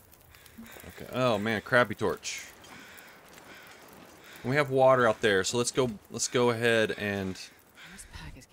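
A torch flame crackles and hisses close by.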